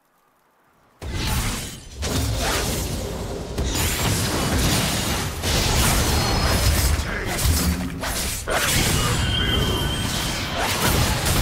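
Loud video game battle sounds of spells blasting and blows clashing burst in and continue.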